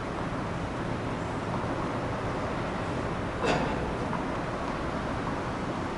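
A tennis ball is struck with a racket and echoes in a large indoor hall.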